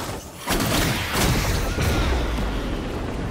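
A magic blast explodes with a deep boom.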